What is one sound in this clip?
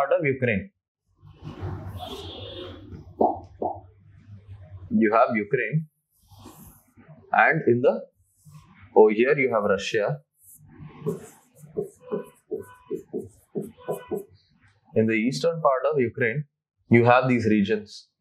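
A man lectures calmly into a close microphone.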